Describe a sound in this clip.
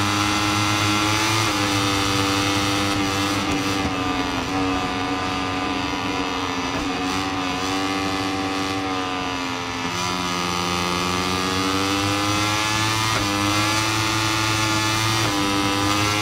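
A motorcycle engine roars at high revs, its pitch jumping as it shifts gears.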